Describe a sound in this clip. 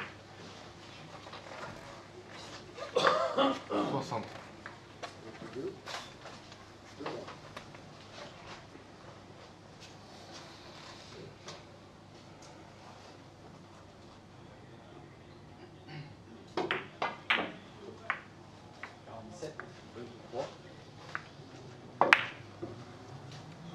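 Billiard balls click against each other and the cushions.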